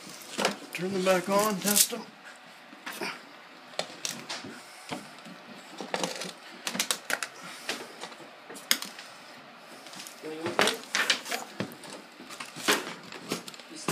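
Laminate planks knock and clatter as they are handled.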